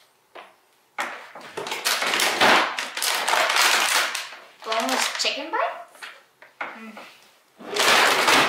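Plastic food packaging rustles and crinkles as frozen items are shuffled about.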